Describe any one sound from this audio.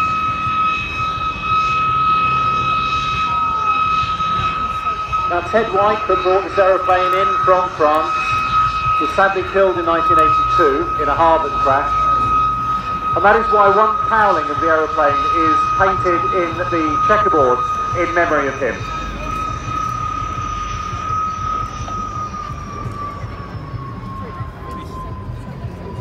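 A propeller plane's engine drones steadily overhead, dropping in pitch as it passes.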